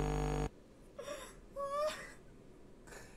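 A young man cries out in alarm close to a microphone.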